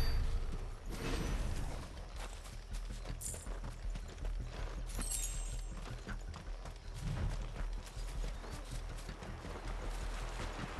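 Footsteps crunch through dry grass and leaves.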